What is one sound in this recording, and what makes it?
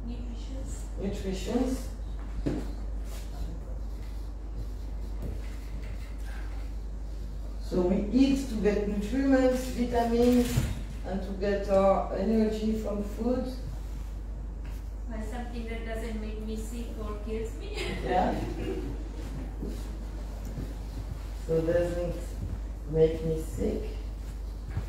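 A woman speaks into a microphone with animation.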